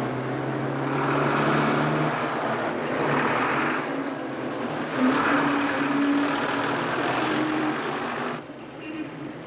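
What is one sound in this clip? A heavy lorry engine roars loudly as the lorry drives past close by.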